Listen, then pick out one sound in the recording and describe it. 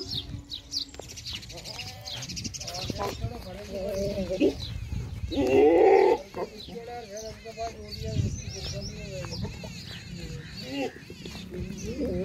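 A herd of goats bleats.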